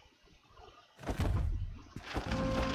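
A short burst of game sound effects plays.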